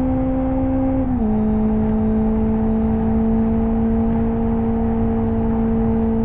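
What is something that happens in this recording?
A racing car engine hums steadily, dropping slightly in pitch as the car shifts gear.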